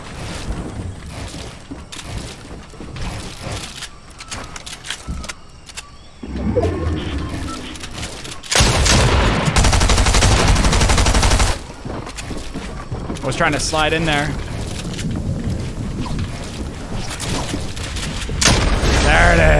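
Rapid clicks and bangs of gunfire and building ring out in a video game.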